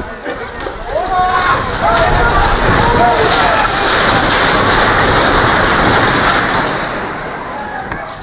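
A building collapses with a loud, long rumbling roar.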